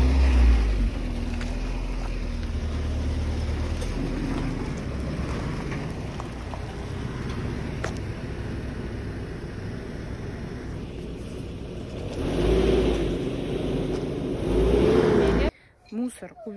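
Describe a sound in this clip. A van engine idles and rumbles nearby.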